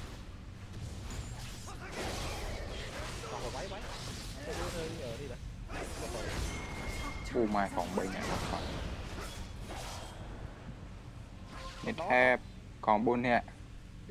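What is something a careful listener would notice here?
A young man talks excitedly close to a microphone.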